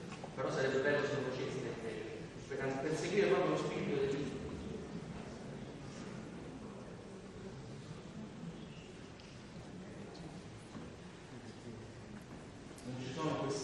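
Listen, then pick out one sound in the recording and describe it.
An audience murmurs softly.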